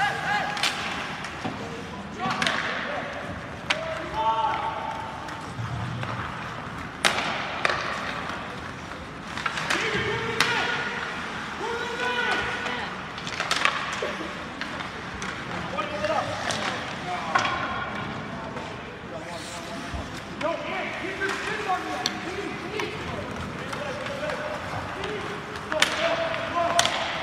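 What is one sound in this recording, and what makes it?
Players and spectators shout and call out across an echoing rink.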